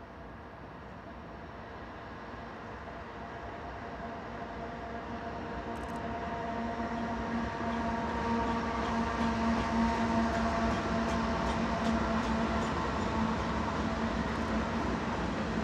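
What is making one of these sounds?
Diesel locomotive engines rumble and grow louder as a freight train approaches.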